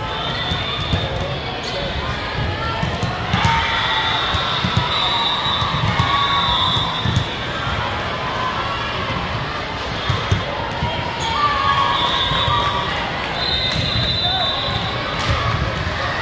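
A volleyball thumps off players' arms and hands.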